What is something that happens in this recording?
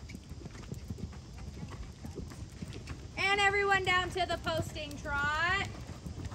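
Horses' hooves thud on soft sand as they canter.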